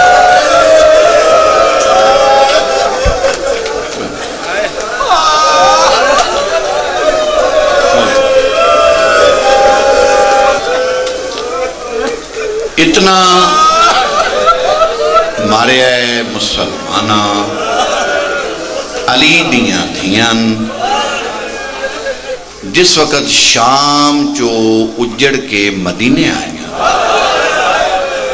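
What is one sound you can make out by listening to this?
A man chants and speaks with strong feeling into a microphone, heard through loudspeakers.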